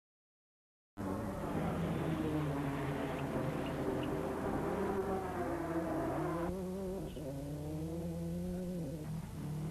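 A rally car engine revs hard, rising and falling in pitch.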